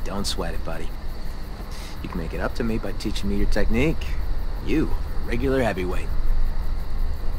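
A young man speaks calmly and warmly.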